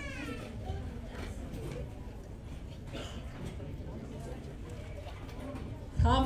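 A crowd of young people chatters in a large room.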